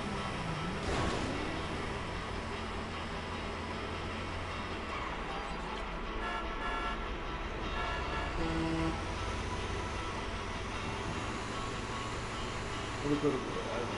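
A heavy truck engine rumbles steadily as it drives along.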